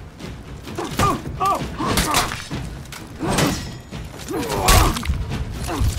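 Steel swords clash and ring.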